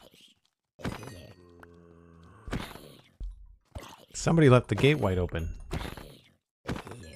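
A zombie groans low.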